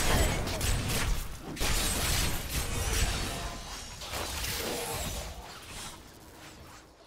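Fiery blasts crackle and burst during a fight.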